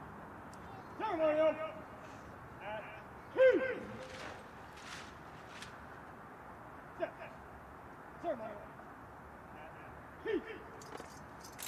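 A man shouts long drawn-out commands across an open field.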